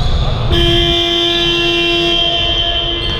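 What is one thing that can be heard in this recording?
A referee blows a whistle in a large echoing hall.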